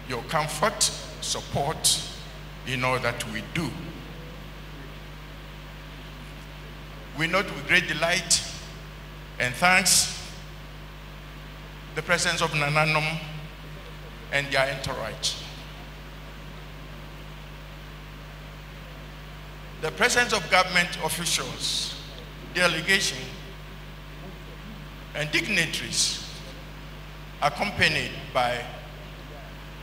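An elderly man speaks slowly and solemnly through a microphone in a large echoing hall, with long pauses.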